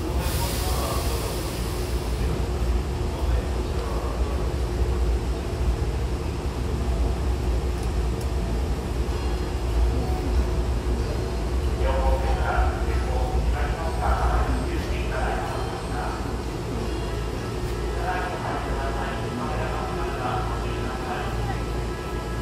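A train's motor hums low and steady while standing still.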